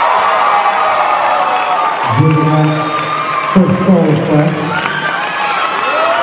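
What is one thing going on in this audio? A crowd cheers and claps loudly in a large hall.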